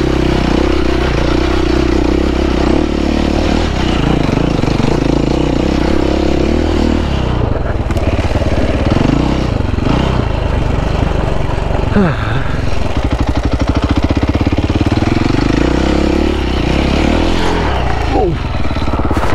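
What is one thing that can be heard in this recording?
Tyres crunch and slip over mud and rocks.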